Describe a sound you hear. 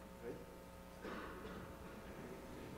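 A man speaks in a large echoing hall.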